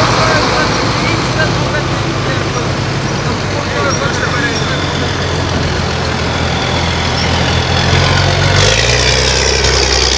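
An armoured vehicle engine roars as it rolls past.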